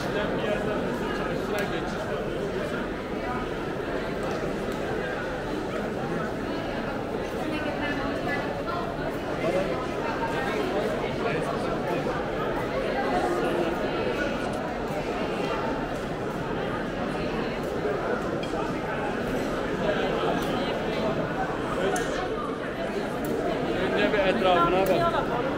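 Footsteps shuffle and tap on a stone floor.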